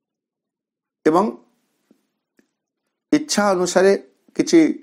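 A man speaks calmly and close to the microphone, in short bursts.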